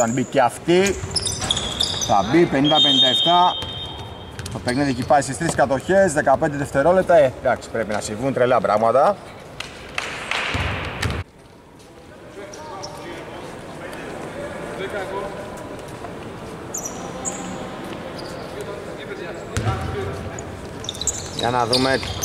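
Sneakers squeak on a hardwood court in a large echoing arena.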